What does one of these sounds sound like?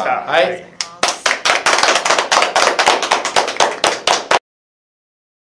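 A small group claps their hands.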